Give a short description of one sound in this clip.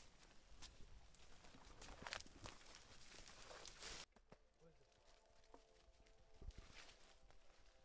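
Footsteps rustle and crunch through dense undergrowth and dry leaves.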